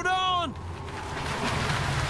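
Water splashes as people jump in.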